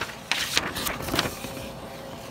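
A finger rubs and brushes close against a microphone.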